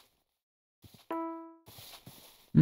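A short bright chime rings out.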